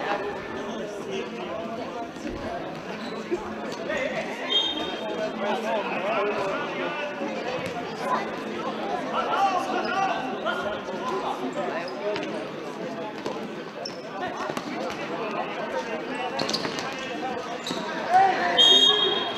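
Spectators talk and murmur together in a large echoing hall.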